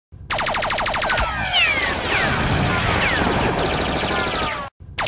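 Laser blasters fire rapid zapping shots.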